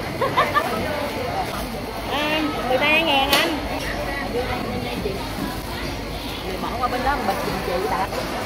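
Voices chatter in the background.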